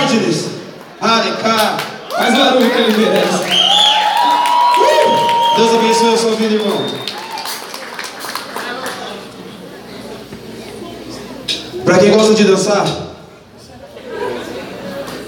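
A young man sings and raps loudly through a microphone.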